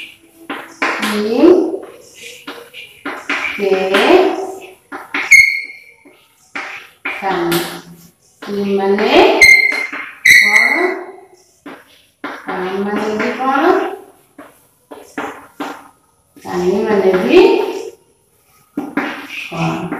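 A young woman speaks slowly and clearly, close by, as if teaching.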